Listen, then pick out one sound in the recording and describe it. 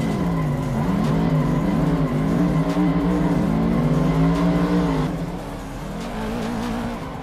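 Two car engines roar and rev up and down.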